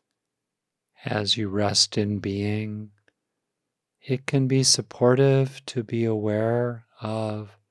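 An older man speaks calmly and closely into a microphone.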